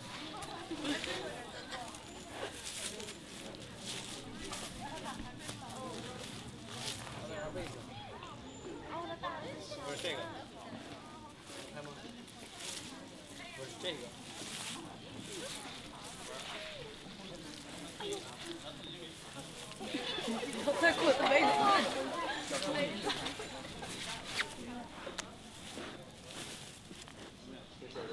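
A cloth rustles and crumples on grass as a panda cub tugs it.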